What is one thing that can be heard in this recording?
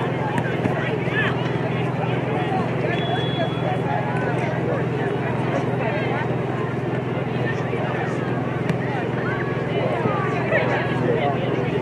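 Young women chatter and call out over one another in the open air.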